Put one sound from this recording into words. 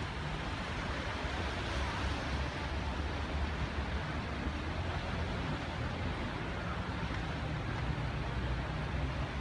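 Sea waves wash against rocks below.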